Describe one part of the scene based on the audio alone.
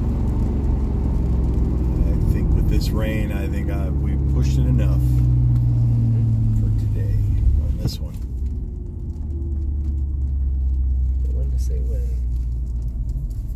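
A car engine hums at low speed, heard from inside the cabin.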